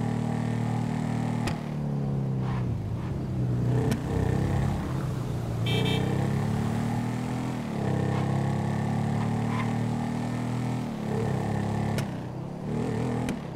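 A motorcycle engine roars, revving up and down as it rides along.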